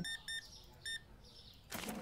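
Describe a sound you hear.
A cash register beeps.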